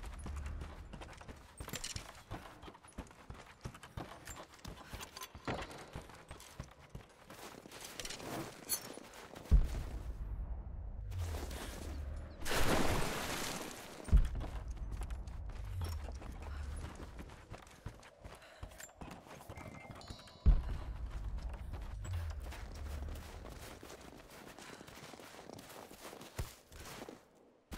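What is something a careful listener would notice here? Footsteps thud on wooden boards and crunch in snow.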